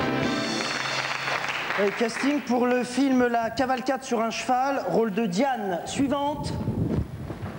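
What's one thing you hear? A man reads aloud into a microphone.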